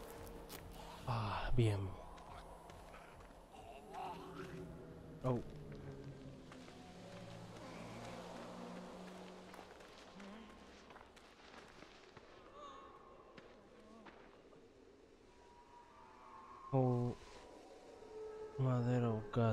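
A man speaks into a close microphone, with bursts of exclamation.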